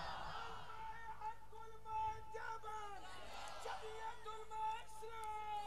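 A man recites in a steady, melodic chanting voice.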